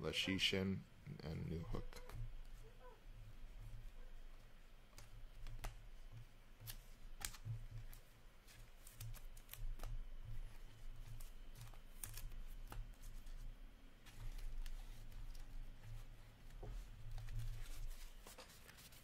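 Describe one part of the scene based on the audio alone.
Hard plastic card cases click and tap against each other as they are handled.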